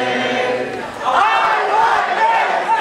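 A crowd cheers and whoops loudly.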